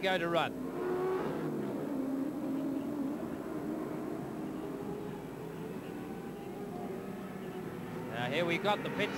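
A racing car engine roars as the car speeds past.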